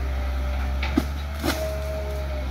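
Rocks clank against an excavator bucket.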